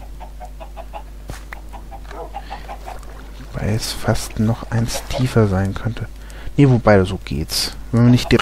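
Water flows and splashes steadily.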